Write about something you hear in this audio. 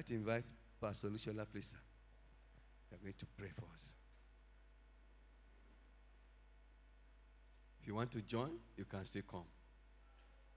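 A man speaks into a microphone over a loudspeaker, in short bursts with long pauses.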